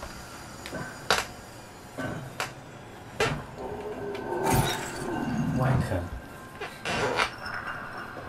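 Metal canisters clatter and roll across a hard floor.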